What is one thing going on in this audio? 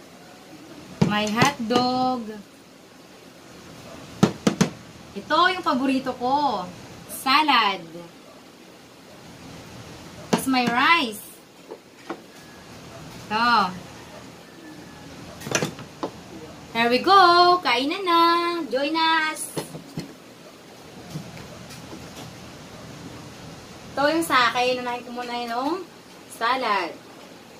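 Dishes clink on a table.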